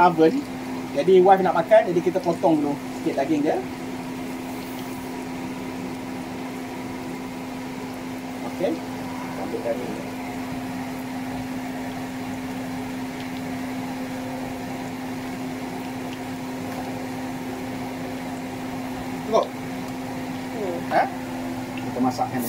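A knife slices through cooked meat.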